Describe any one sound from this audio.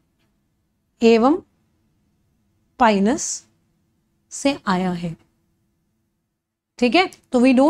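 A young woman speaks close to a microphone with animation, in short bursts with pauses.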